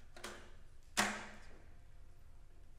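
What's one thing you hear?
A guitar is strummed once and rings briefly.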